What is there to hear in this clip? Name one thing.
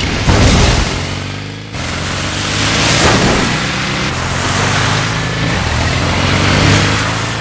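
A motorcycle engine roars as the bike rides at speed.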